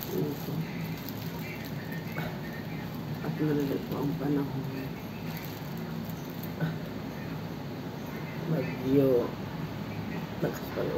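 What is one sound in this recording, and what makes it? A woman talks calmly close to a microphone.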